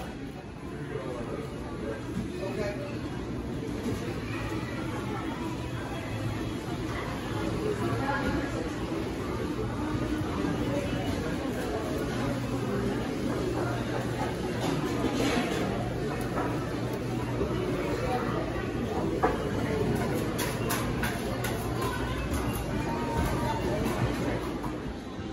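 A crowd of shoppers murmurs and chatters in a large hall.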